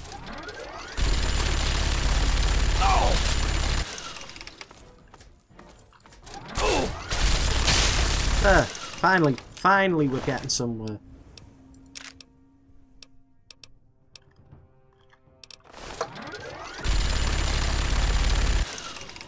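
A machine gun fires in long, rapid bursts.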